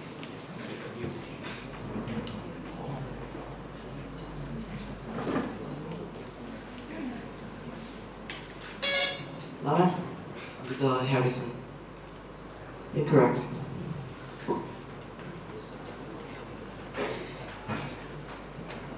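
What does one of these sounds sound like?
A young man speaks calmly into a microphone, heard through loudspeakers in an echoing hall.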